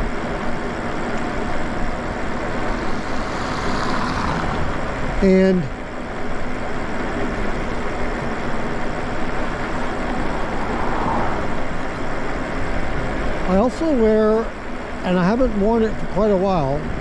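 An electric motor whines steadily.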